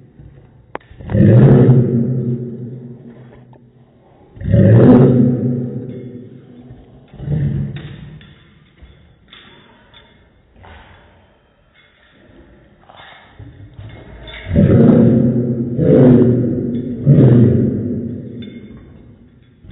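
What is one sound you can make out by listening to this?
A dog howls loudly in long, drawn-out calls, close by.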